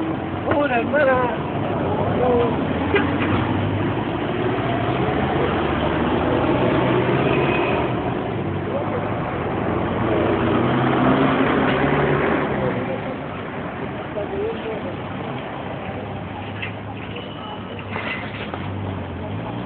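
A hand truck rattles as its wheels roll over pavement.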